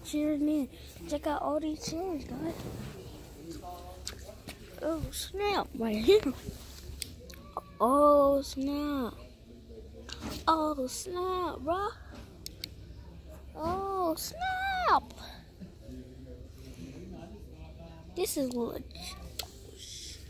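A young girl talks with animation close to a phone's microphone.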